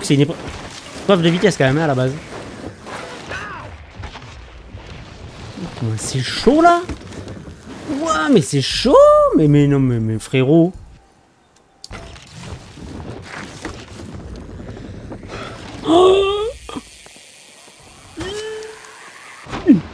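Bicycle tyres rumble over dirt and wooden planks.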